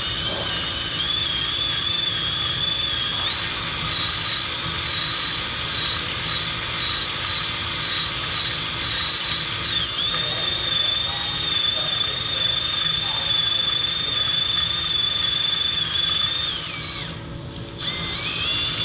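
A CNC lathe cuts metal with a high, steady whine.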